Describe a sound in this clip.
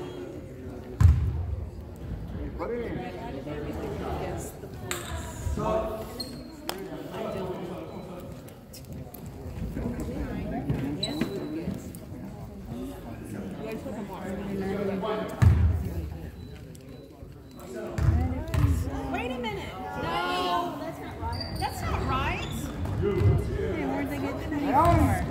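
A basketball thuds on a hardwood floor.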